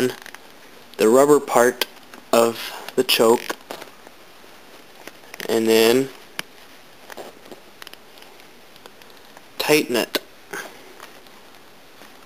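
A small knob clicks as it is turned by hand.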